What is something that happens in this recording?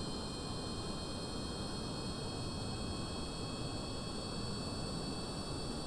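Rocket engines roar steadily.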